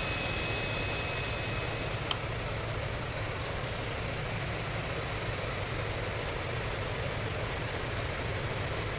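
A jet engine hums steadily.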